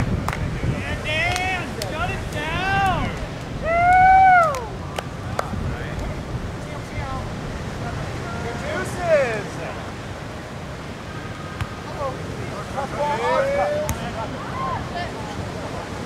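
Young men shout and call out across open ground outdoors.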